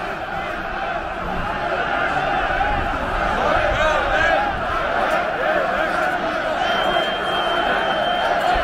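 A large crowd chatters and murmurs outdoors.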